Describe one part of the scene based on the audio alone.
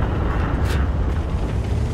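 A shell explodes with a dull boom.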